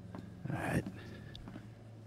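A man says a short word calmly, close by.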